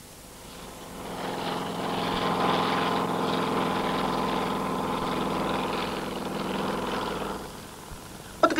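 An airplane engine drones steadily.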